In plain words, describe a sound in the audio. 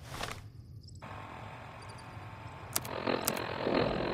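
A device menu clicks and beeps.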